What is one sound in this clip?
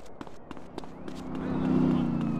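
A car engine hums as it passes.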